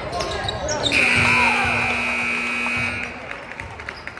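A loud buzzer sounds steadily, then stops.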